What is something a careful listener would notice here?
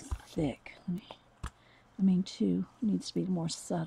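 A paper towel rubs against a hard plastic surface.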